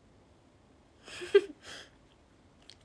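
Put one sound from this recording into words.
A young woman laughs softly, close to a phone microphone.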